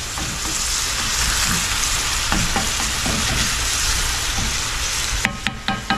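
A spatula scrapes and taps in a pan.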